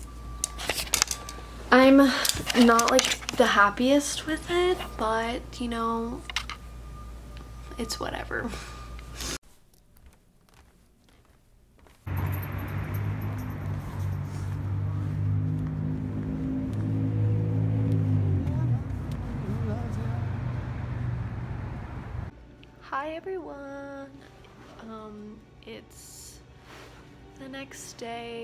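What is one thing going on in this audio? A young woman talks casually, close to the microphone.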